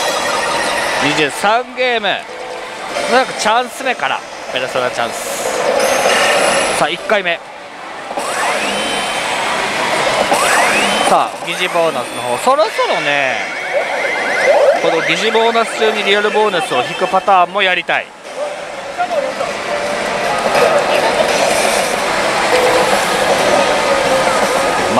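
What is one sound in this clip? A slot machine plays loud electronic music and jingles.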